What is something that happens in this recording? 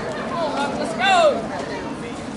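A woman shouts loudly nearby.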